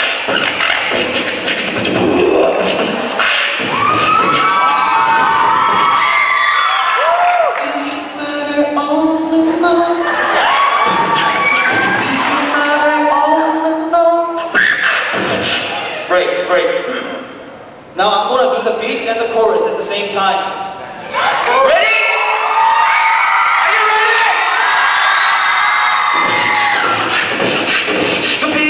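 A young man sings through a microphone over loudspeakers in a large echoing hall.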